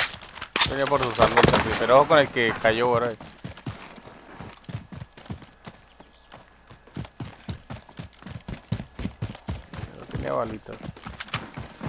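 Footsteps run quickly over dry grass and dirt.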